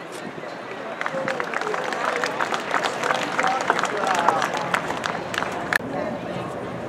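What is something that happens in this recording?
A crowd of spectators claps and cheers outdoors.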